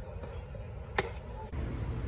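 A baseball bat cracks sharply against a ball.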